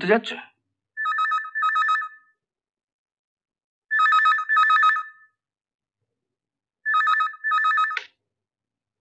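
A telephone rings in repeated bursts.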